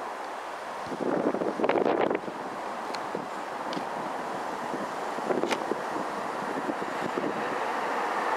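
Tram wheels clatter over rail joints.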